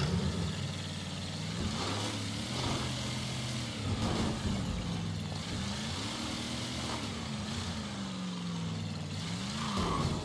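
Tyres crunch over snowy gravel.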